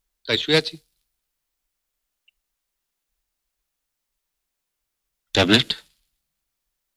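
A man speaks in short phrases.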